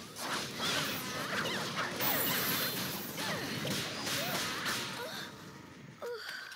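Magic spells blast and whoosh in a fierce fight.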